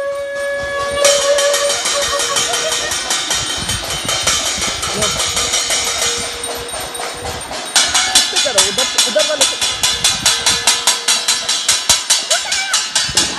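A metal plate rings under quick, steady strikes from a stick.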